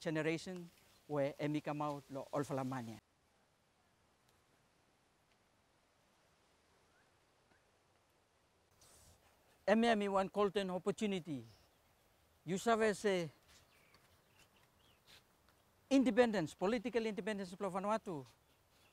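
A man talks with animation close to a microphone, outdoors.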